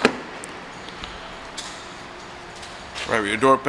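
A car door latch clicks and the door swings open.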